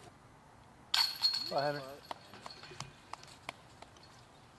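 A disc crashes into metal chains, which rattle and jingle.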